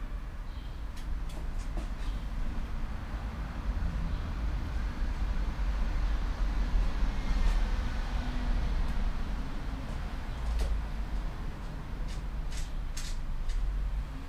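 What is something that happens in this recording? Metal tools click and clink against a bicycle.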